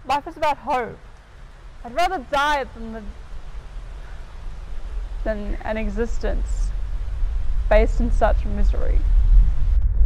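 A young woman speaks in a shaky, emotional voice close by.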